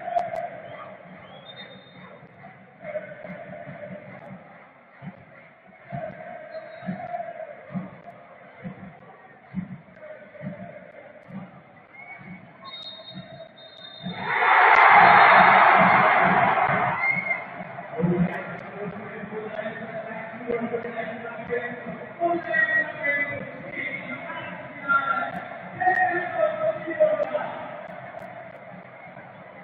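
A large stadium crowd chants and cheers throughout.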